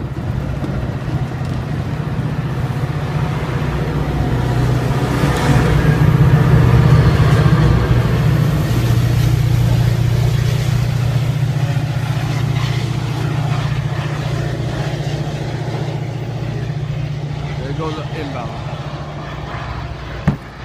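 A diesel locomotive engine rumbles loudly up close, then slowly fades as it pulls away.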